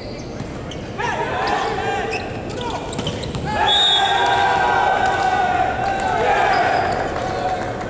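Young men shout and cheer loudly together.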